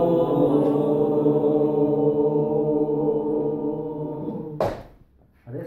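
A small mixed choir of men and women sings a long, held chord together.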